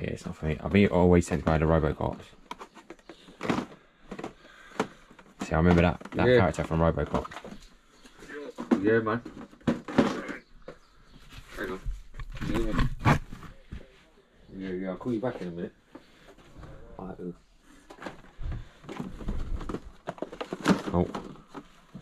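Plastic toy packaging rustles and clicks as hands handle it.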